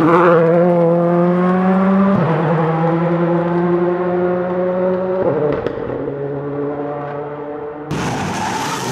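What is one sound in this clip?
A rally car engine roars at high revs as the car speeds along a gravel road.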